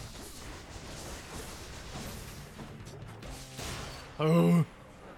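Game combat noises crackle and blast.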